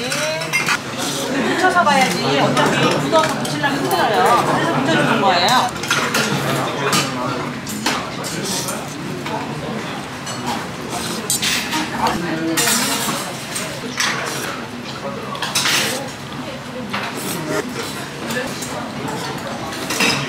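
A young man slurps noodles loudly, close by.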